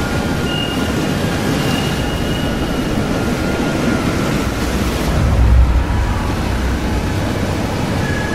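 Stormy waves crash and churn against wooden piers.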